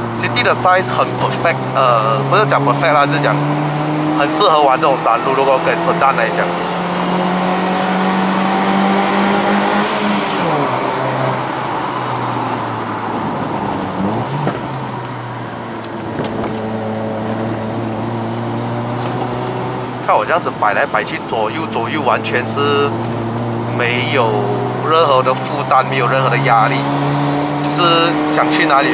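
A car engine hums steadily, rising and falling in pitch as the car speeds up and shifts gears.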